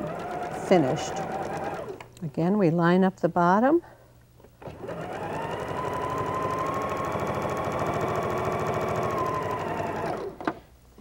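A sewing machine whirs as it stitches fabric.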